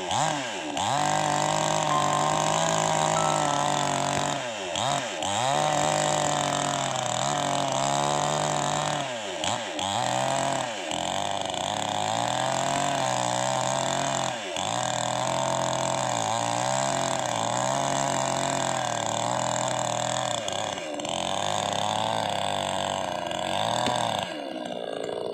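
A chainsaw engine roars loudly, dipping and rising in pitch as it cuts into wood.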